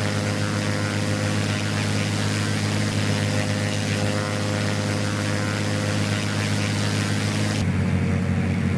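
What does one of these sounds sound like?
A propeller engine drones steadily outside an aircraft.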